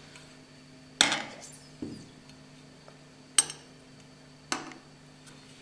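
A metal cake server clinks against a ceramic plate.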